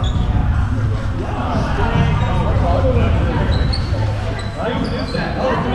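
A crowd of young people chatters in a large echoing gym.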